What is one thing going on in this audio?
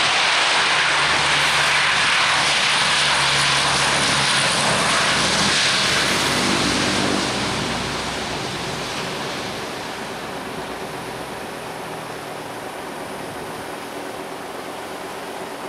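A propeller aircraft's engines roar loudly as it speeds down a runway.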